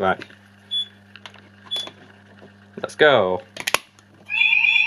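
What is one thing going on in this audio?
A key clicks into a fire alarm call point.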